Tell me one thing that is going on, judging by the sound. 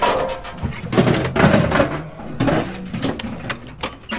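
A microwave oven thumps down onto grass.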